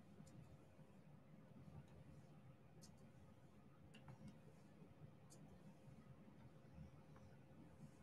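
Tiny plastic beads click softly as fingers press them into place.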